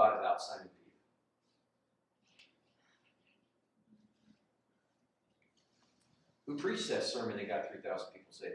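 A middle-aged man speaks calmly, pausing between phrases.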